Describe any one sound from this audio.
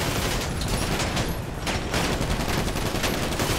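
Cars crash into each other with loud metallic impacts.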